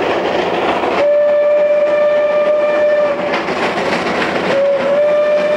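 A steam locomotive's whistle blows a long steady tone.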